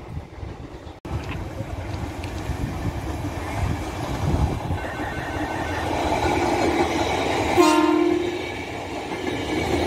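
An electric commuter train rolls by on the tracks.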